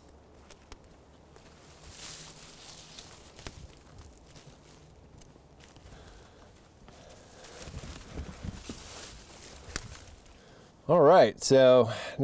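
Footsteps rustle through ferns and undergrowth.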